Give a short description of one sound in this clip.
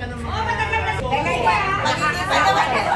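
A middle-aged woman talks and laughs close by.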